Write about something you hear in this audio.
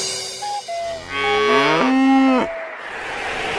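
A cow moos loudly.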